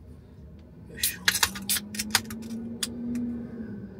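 Drink cans clink and tap against each other nearby.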